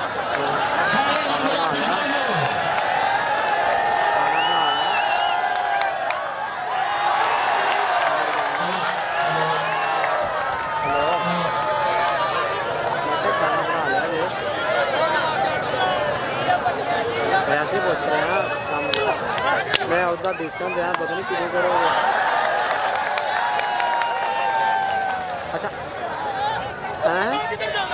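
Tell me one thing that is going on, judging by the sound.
A large crowd of men cheers and shouts outdoors.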